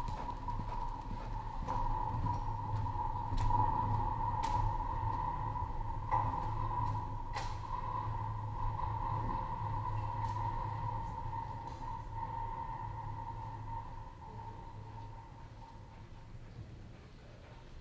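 Horse hooves thud softly on dirt at a lope.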